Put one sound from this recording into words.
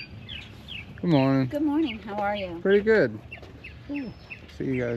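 A woman speaks close by in a lively voice.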